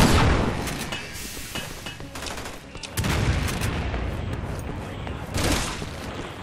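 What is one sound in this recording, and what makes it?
A shotgun fires loud booming blasts.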